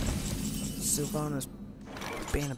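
A game chimes as a turn begins.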